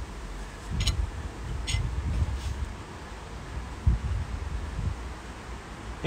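A fork whisks egg against a bowl.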